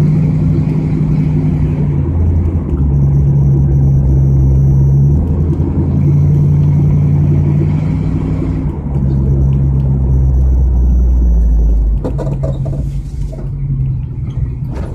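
A car engine hums loudly from up close, rising and falling in pitch as the car shifts through gears.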